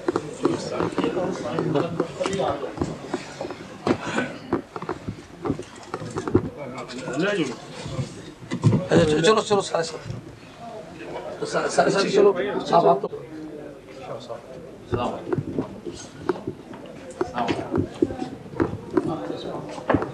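Men talk over each other in a crowded, jostling group close by.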